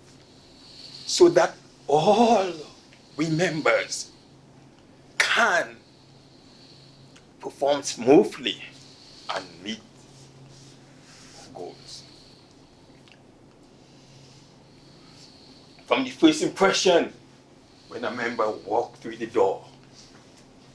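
An elderly man speaks with animation, pausing between phrases.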